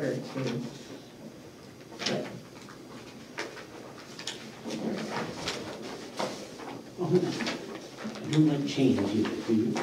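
A woman speaks calmly into a microphone in a room with a slight echo.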